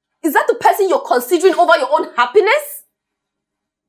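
A young woman speaks with animation, close by.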